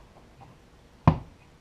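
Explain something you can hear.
A plastic lid clicks onto a container.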